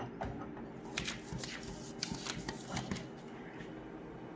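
Paper rustles as a hand lays a sheet on the copier glass.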